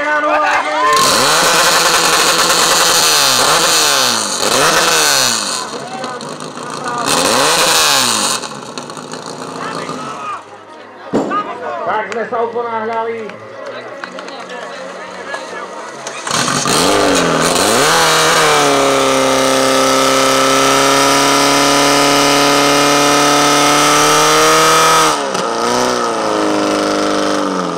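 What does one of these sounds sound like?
A pump engine roars and revs up and down.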